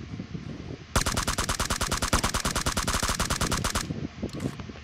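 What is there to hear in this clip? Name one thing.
An automatic rifle fires a rapid, loud burst.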